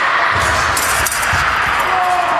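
Fencing blades clash and clatter quickly.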